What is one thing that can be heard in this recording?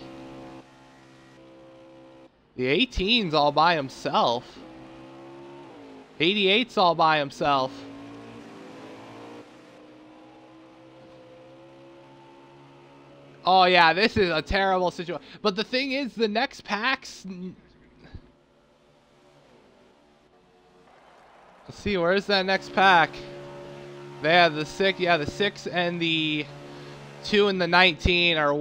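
Race car engines drone steadily at high speed.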